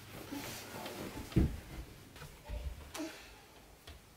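Bedsheets rustle as someone shifts in bed.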